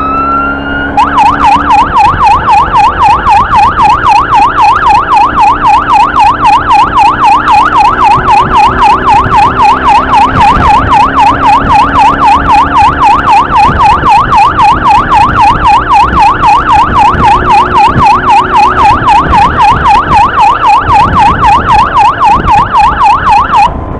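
A siren yelps rapidly up close.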